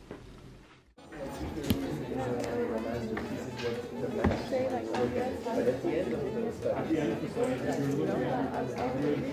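Many people chatter in a large echoing hall.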